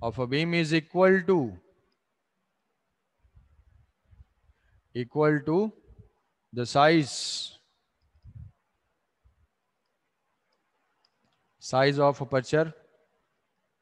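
A young man speaks calmly into a microphone, in short phrases with pauses.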